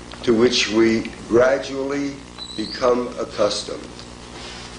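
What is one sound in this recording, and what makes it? An older man speaks firmly, heard through a microphone.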